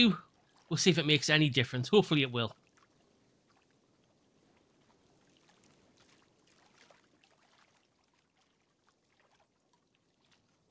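A fishing reel clicks softly as line is wound in.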